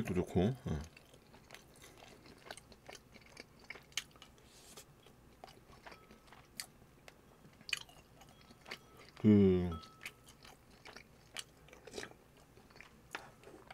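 A spoon clinks against a ceramic bowl.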